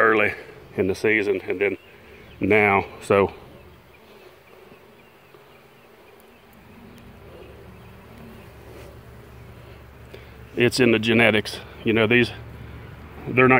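Honeybees buzz in a low, steady hum.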